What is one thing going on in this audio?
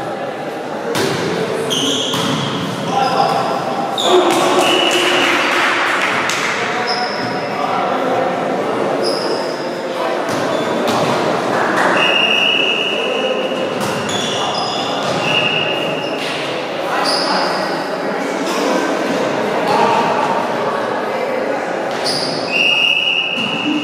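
A volleyball is struck with sharp slaps that echo through a large hall.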